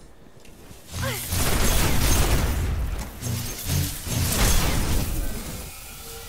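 An automatic rifle fires bursts in a video game.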